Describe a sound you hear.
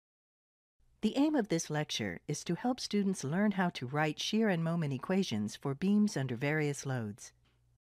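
A young woman speaks calmly and clearly into a microphone.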